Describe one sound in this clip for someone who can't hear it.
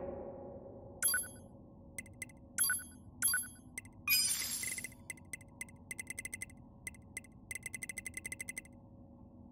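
Short electronic beeps and clicks sound as menu items are selected.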